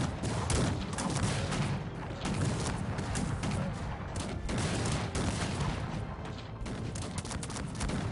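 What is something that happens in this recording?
Musket fire crackles and pops in rapid bursts.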